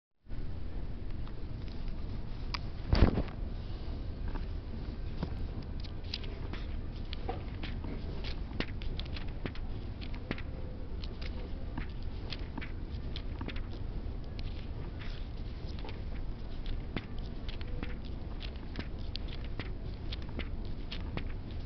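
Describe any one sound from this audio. Book pages rustle and flip close by.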